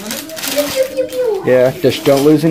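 A plastic bag crinkles and rustles as it is torn open.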